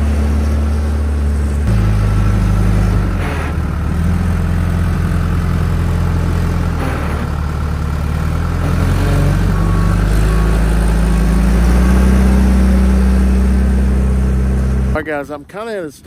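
A backhoe's diesel engine rumbles loudly as it pushes dirt.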